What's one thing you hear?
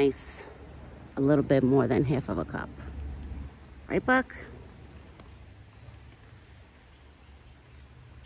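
A deer crops and chews grass close by.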